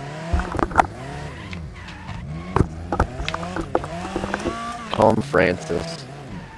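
Metal bangs as cars collide.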